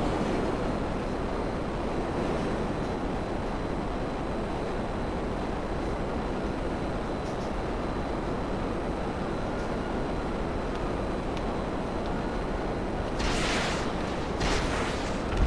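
A jet engine roars steadily as a fighter plane flies low.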